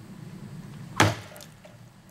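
A metal blade knocks once against wood.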